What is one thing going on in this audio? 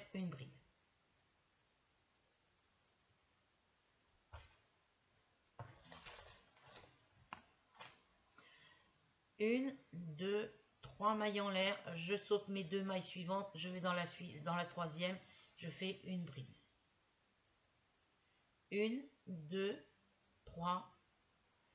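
An elderly woman speaks calmly and close by, with pauses.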